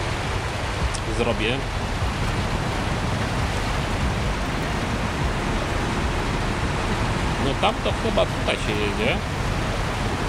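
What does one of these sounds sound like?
Water splashes under truck tyres.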